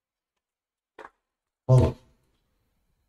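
A tennis ball is struck hard with a racket, with a sharp pop.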